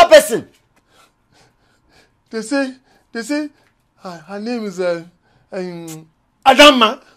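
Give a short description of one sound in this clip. An elderly man speaks angrily and loudly.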